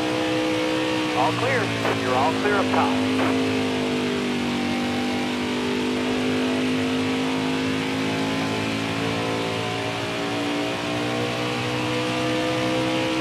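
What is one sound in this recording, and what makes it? A racing truck's engine roars steadily at high speed.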